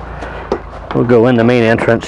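A man steps up onto a metal step.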